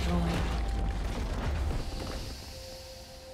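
Game spell effects crackle and burst in a fight.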